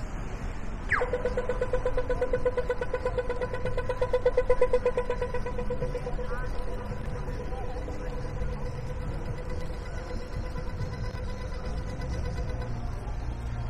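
A pedestrian crossing signal beeps rapidly and steadily.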